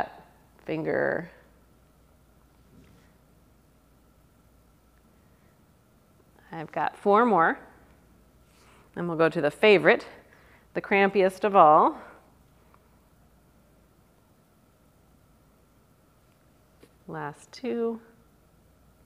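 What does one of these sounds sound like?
A woman speaks calmly in short phrases, close by.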